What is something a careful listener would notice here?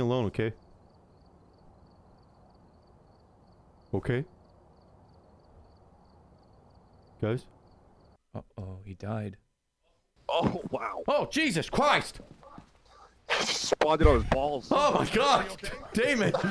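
A man talks with animation into a headset microphone.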